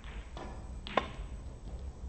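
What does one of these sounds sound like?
A cue strikes a snooker ball with a sharp tap.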